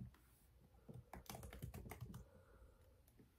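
Keys click softly.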